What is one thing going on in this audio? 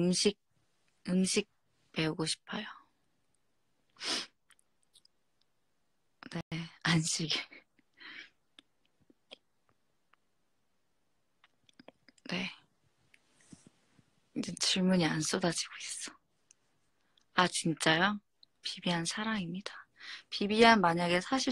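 A young woman talks softly and playfully, close to the microphone, in short bursts.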